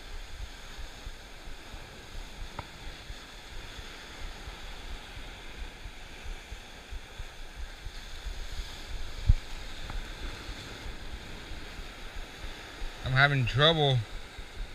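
Waves wash and break against rocks below.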